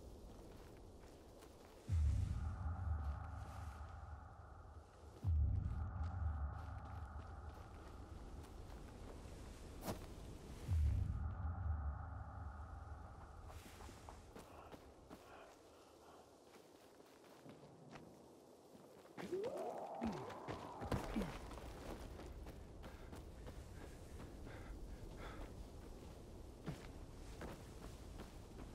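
Footsteps rustle through forest undergrowth.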